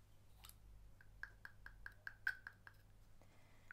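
A perfume bottle's sprayer clicks repeatedly.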